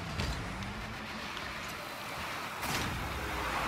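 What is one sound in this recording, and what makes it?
A car engine roars with a rushing boost.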